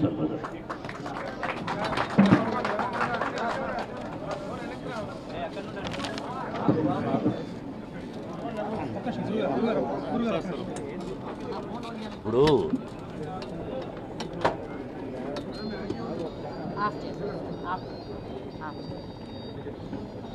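A crowd of men talk and call out nearby.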